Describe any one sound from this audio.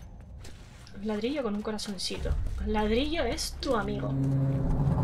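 A young woman talks with animation through a close microphone.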